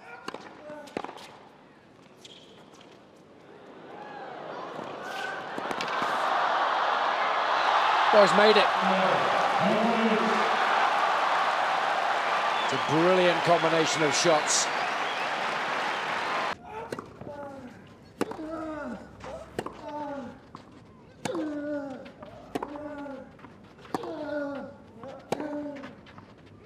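A tennis ball is struck with sharp pops back and forth.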